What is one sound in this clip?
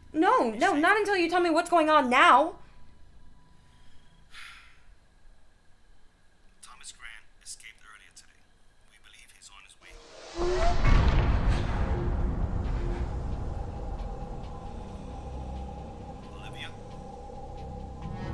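A young woman speaks quietly and tensely into a phone.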